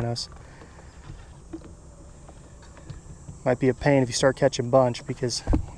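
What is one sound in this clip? Water laps gently against a small boat.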